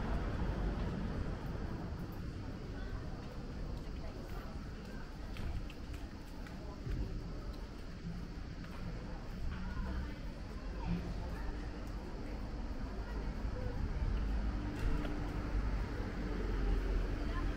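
Footsteps tap on paving stones outdoors.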